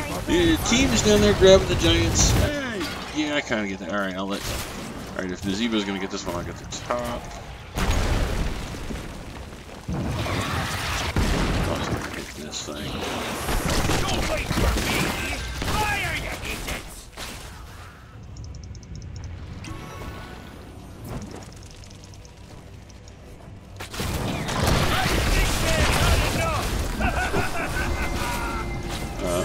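Magic blasts and weapon hits crackle and zap in a fast game battle.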